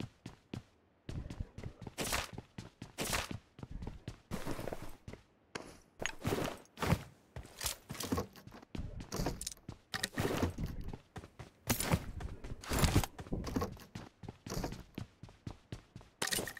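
Footsteps patter quickly in a video game.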